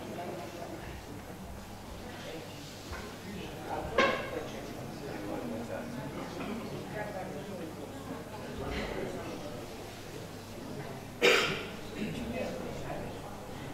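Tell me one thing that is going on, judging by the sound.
An elderly man talks quietly without a microphone.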